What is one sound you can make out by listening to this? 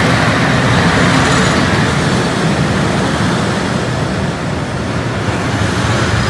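Train wheels clatter on the rails as wagons roll past.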